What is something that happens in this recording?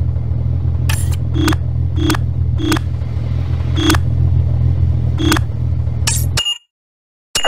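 Menu selections click and chime in quick beeps.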